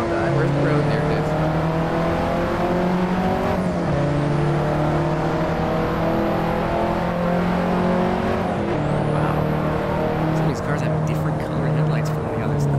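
A car engine drones steadily, its pitch shifting as the gears change.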